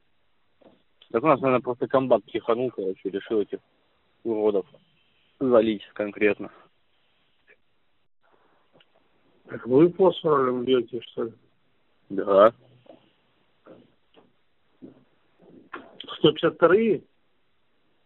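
A man talks over a phone line.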